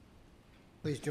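A man begins speaking into a microphone.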